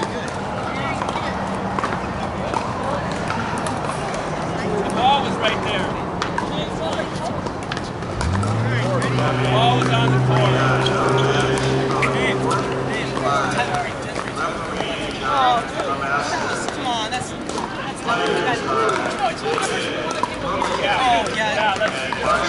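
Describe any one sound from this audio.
Paddles pop against a plastic ball in a quick back-and-forth rally.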